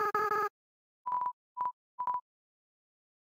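Three short electronic beeps sound one after another.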